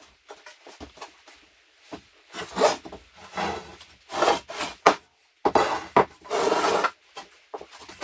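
Wooden boards knock against each other.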